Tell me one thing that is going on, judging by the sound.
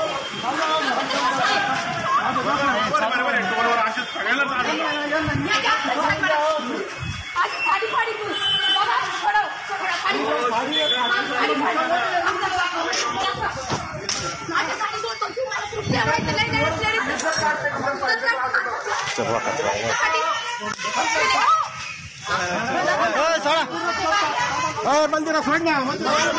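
Women shout angrily close by.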